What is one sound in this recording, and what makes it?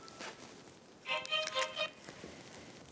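A phone's keys beep as a number is dialled.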